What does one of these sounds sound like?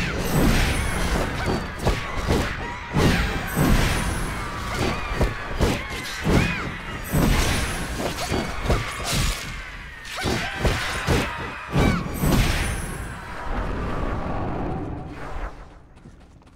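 Blades clash and strike repeatedly in a fast fight.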